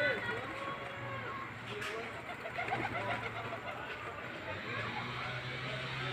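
Pigeons flap their wings outdoors.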